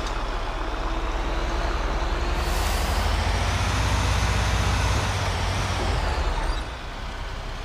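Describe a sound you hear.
A heavy truck engine rumbles and roars as the truck drives.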